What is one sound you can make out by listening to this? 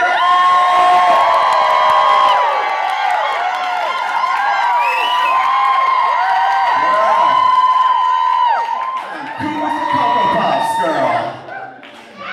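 A large crowd cheers and screams loudly.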